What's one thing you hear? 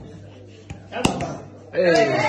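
A cork pops out of a bottle.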